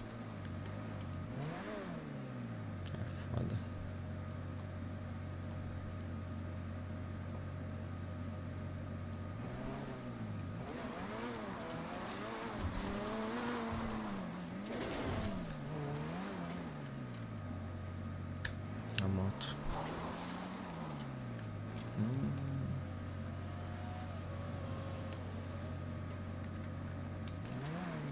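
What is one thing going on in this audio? A car engine idles and revs up and down.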